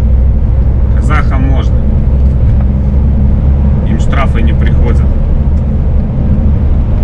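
An engine rumbles steadily as a vehicle drives along a highway.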